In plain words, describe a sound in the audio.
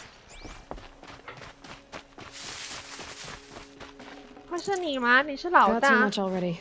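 Footsteps crunch softly on dirt and gravel.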